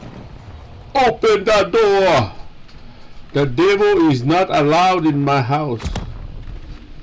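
A man speaks loudly and with animation close to a microphone.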